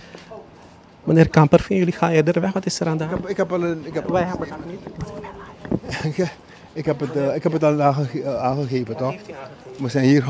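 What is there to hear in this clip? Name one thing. An elderly man speaks calmly into microphones close by.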